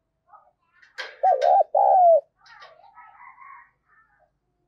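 A dove coos close by in deep, rounded notes.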